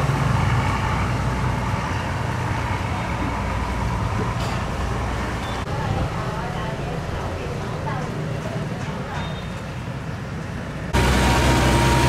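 A boat engine chugs steadily close by.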